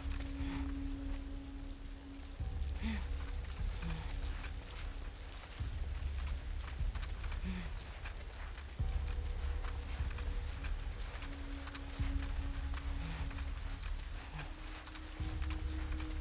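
Wind rustles through tall grass.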